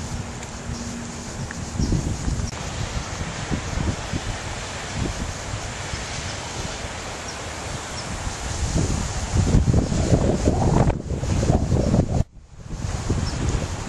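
A swollen river rushes and gurgles nearby.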